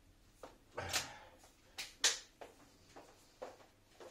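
A person's footsteps walk away across a hard floor.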